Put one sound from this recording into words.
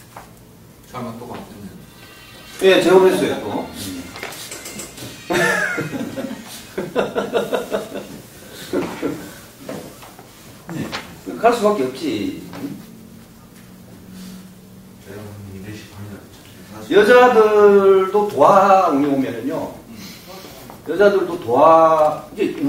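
A middle-aged man speaks calmly and clearly nearby, pausing now and then.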